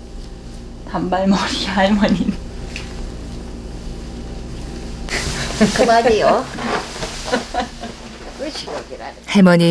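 An elderly woman speaks softly nearby.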